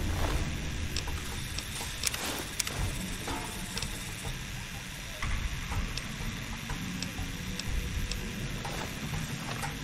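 Short soft clicks tick now and then.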